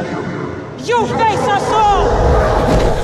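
A woman snarls in a harsh, menacing voice.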